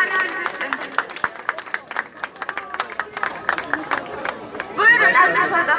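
A crowd claps hands in rhythm outdoors.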